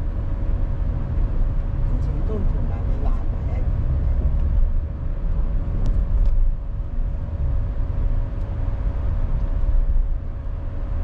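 Tyres roll on the road surface with a low rumble.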